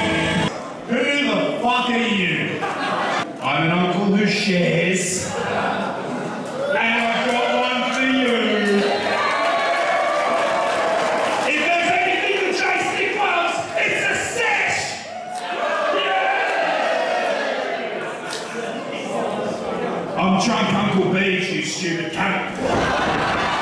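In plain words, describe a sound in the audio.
A young man talks with animation into a microphone, heard over loudspeakers in a large echoing hall.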